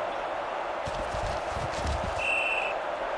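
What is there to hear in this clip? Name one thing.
Football players collide with dull thuds.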